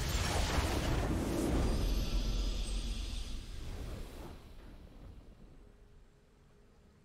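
A triumphant game fanfare swells loudly, then fades away.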